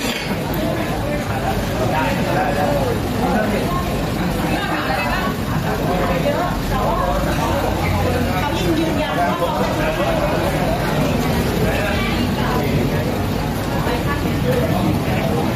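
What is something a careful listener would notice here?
A car engine idles nearby.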